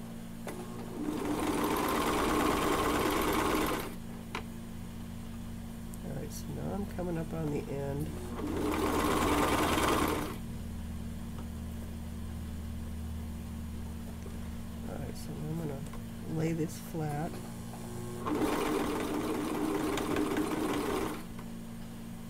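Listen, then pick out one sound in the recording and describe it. A sewing machine runs fast in short bursts, whirring and stitching.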